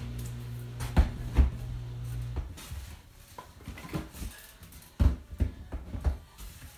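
Objects knock and thump as a man handles them close by.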